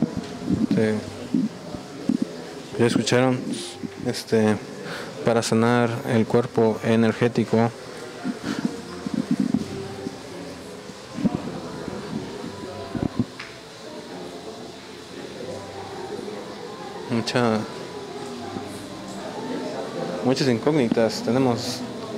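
A man speaks with animation nearby in a small echoing room.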